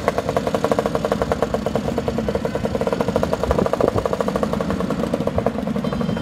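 A small three-wheeled vehicle's engine putters as it drives past close by.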